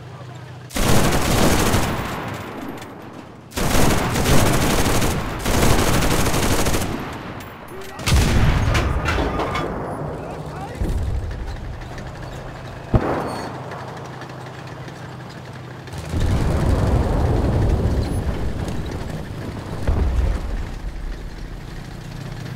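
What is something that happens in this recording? Heavy gunfire blasts in loud bursts.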